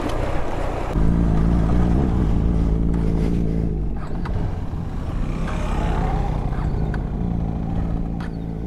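A motorcycle engine roars louder as the motorcycle rides off.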